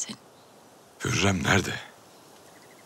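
A man speaks in a low, firm voice, close by.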